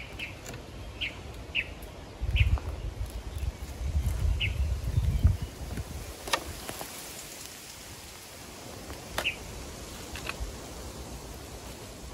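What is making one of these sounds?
Dry branches snap and crackle as a man handles them.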